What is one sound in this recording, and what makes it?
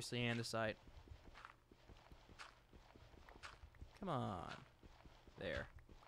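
Dirt crunches in short, repeated thuds as it is dug away.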